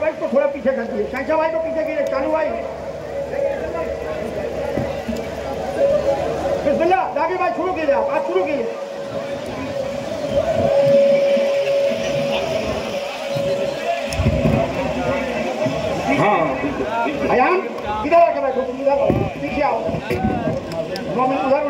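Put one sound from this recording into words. A large crowd of men chatters and calls out loudly.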